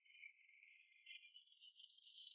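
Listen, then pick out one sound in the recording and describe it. A large beast snarls.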